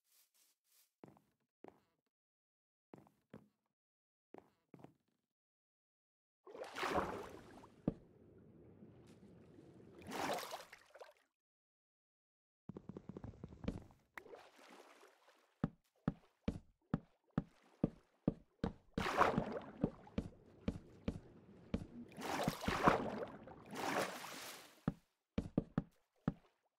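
Wooden blocks are placed and broken with short knocks.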